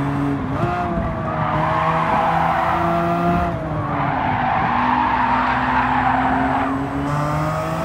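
Tyres screech through corners.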